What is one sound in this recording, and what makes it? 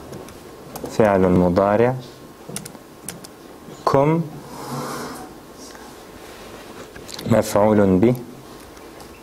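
A man speaks slowly in short, drawn-out phrases close to a microphone.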